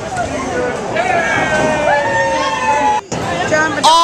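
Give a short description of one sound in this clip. A man cheers loudly.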